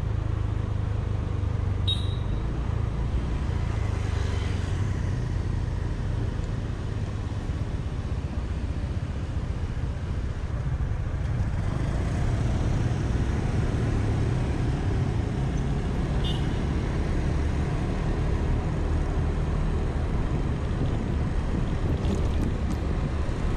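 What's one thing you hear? A motor scooter engine hums steadily while riding.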